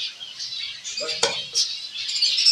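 A clay pot scrapes and knocks as it is handled.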